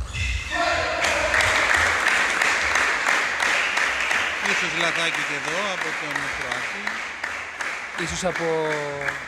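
A crowd cheers and applauds loudly in a large echoing hall.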